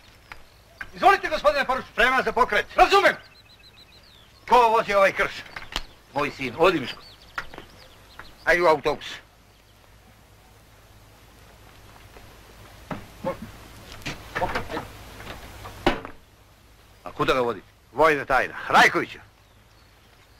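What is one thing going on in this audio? An older man shouts orders sharply outdoors.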